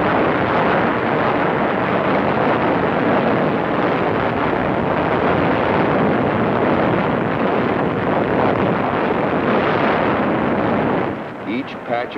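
Explosions boom and rumble over the sea.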